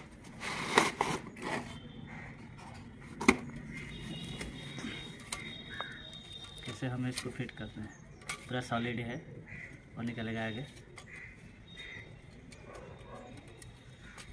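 Metal tripod legs click and clank as they are pulled out.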